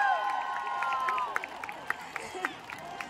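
Fans clap their hands.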